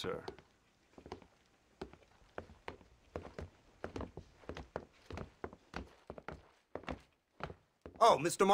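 Footsteps knock on a wooden floor.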